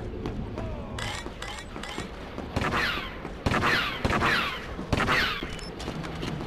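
Laser blasters fire in sharp bursts.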